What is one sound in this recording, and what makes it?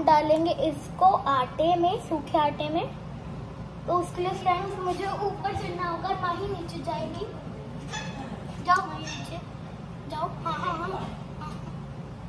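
A young girl talks close by, with animation.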